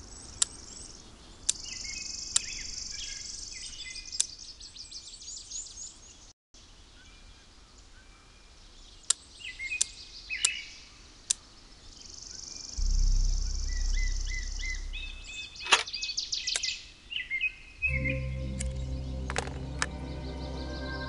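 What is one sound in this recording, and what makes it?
Game clicks tick sharply now and then.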